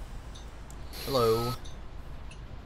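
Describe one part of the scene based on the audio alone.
Bus doors open with a sharp hiss of air.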